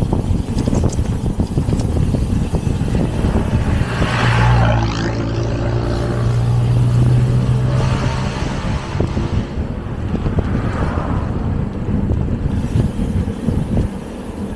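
Wind buffets loudly across a microphone outdoors.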